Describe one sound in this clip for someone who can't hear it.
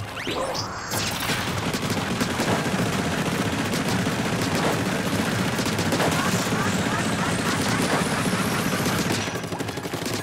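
Rapid squelching shots splatter in quick bursts.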